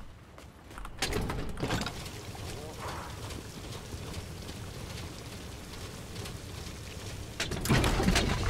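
Fuel gushes steadily from a pump hose into a truck.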